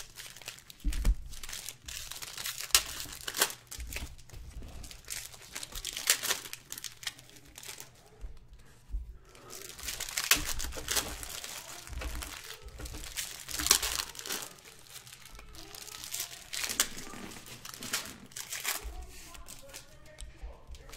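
Cards rustle and slap as they are handled.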